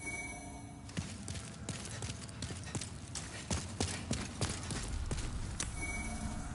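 Footsteps clatter on a stone floor.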